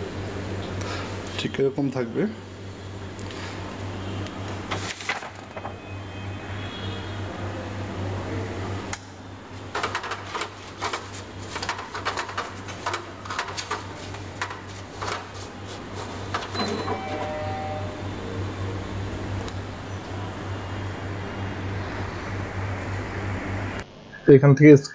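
A copier machine hums steadily.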